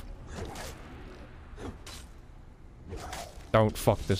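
A heavy hammer strikes an armoured warrior with metallic thuds.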